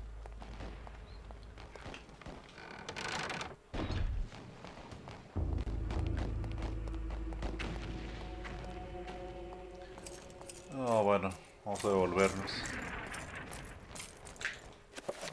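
Footsteps tread on a stone floor.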